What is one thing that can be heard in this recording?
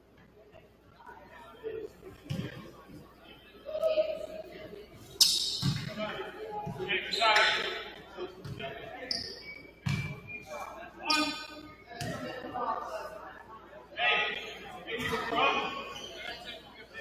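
Spectators and players shout and call out in an echoing gym.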